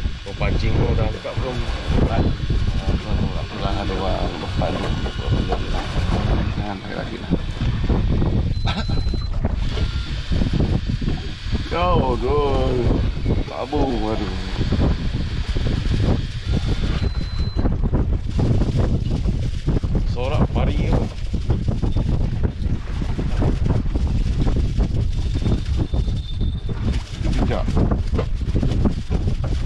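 Men talk with animation close by.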